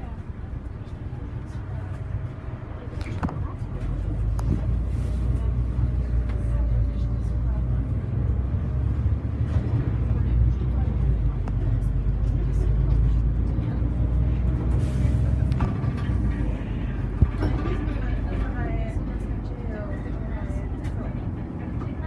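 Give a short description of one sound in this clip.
The bus body rattles and clicks as it rolls over the road.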